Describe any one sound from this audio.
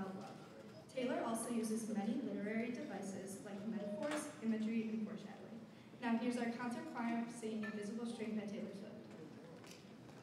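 A choir of teenage girls sings together through a microphone in a large echoing hall.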